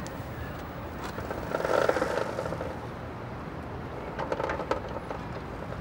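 A wrench clinks against metal bicycle parts.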